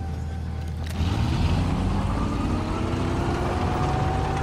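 A tank engine revs up with a rising whine.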